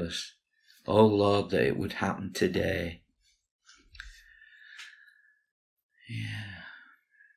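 An older man speaks with animation close to a microphone.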